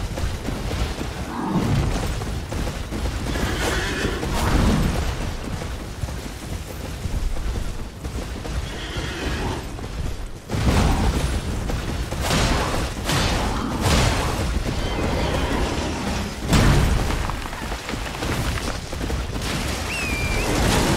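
A man talks into a microphone with animation, close up.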